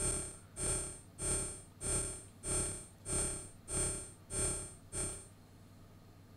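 A modular synthesizer plays a repeating pitched note.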